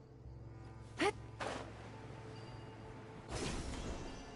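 Wind whooshes past during a glide.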